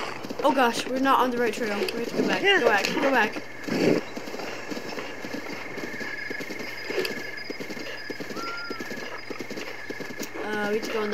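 Horse hooves thud steadily at a gallop over grass.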